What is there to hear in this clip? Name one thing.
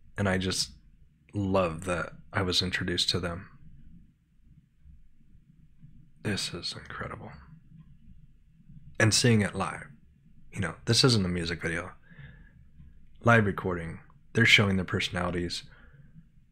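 A man talks calmly and closely into a microphone, pausing now and then.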